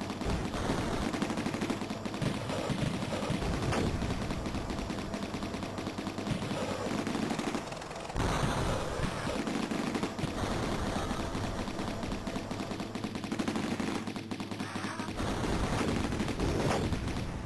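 Video game explosions boom.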